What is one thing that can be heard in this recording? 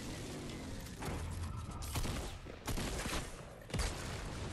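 Loud game sound effects of building and impacts burst out in quick succession.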